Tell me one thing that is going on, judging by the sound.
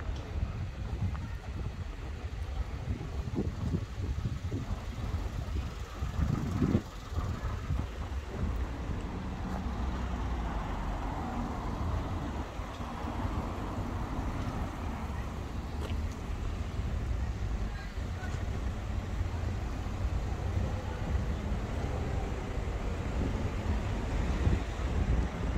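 Traffic rumbles steadily past on a busy street outdoors.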